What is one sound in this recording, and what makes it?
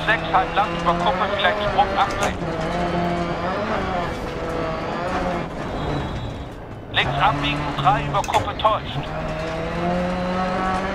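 A rally car engine roars and revs up and down as it shifts gears.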